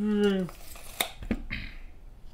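Small figures tap lightly on a tabletop.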